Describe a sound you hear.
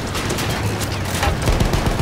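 A heavy tank engine rumbles and clanks.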